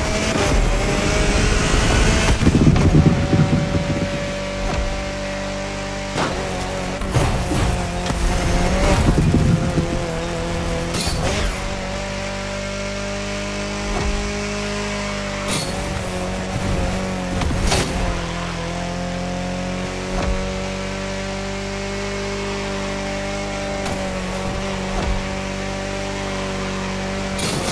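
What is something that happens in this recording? A racing car engine roars at high speed.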